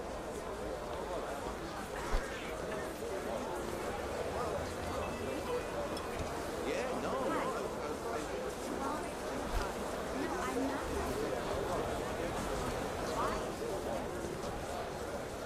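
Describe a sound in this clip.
A dense crowd of men and women murmurs and chatters all around.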